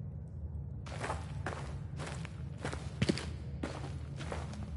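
Footsteps crunch on a rocky floor.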